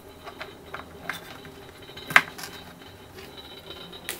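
Hands scrape cut pieces across a board.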